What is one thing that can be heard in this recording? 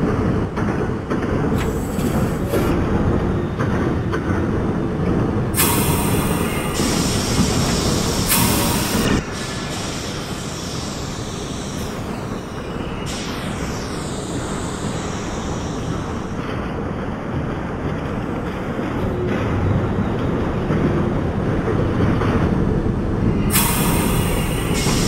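A subway train rumbles steadily along elevated tracks.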